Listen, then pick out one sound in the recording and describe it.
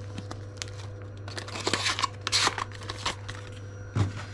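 A knife is pulled from a cardboard sleeve with a rustle.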